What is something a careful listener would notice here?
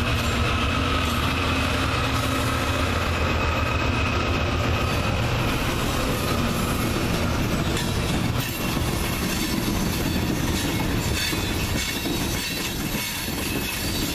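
Loaded hopper cars rumble and clatter over the rails.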